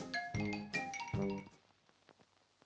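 Bright, brassy game music plays a short jingle and stops.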